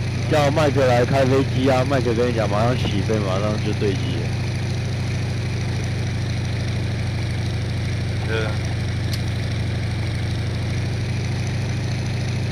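A radial-engine fighter plane drones in flight.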